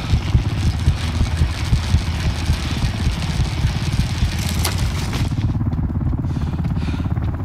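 A helicopter's rotor thumps overhead in a steady, low beating.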